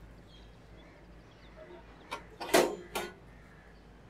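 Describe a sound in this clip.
A metal gate clanks shut.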